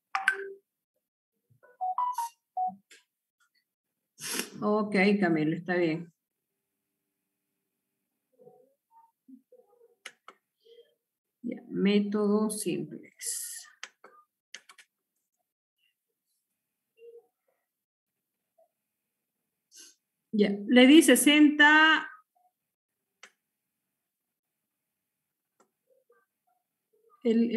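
A middle-aged woman speaks in short bursts over an online call.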